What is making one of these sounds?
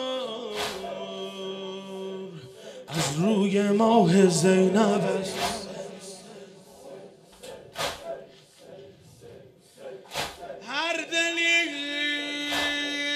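A large crowd beats their chests in a slow, heavy rhythm.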